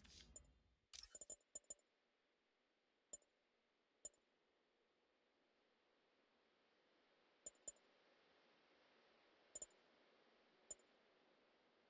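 Short soft clicks tick now and then.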